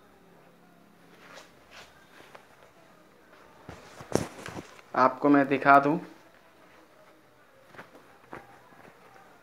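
Denim fabric rustles and flaps in hands.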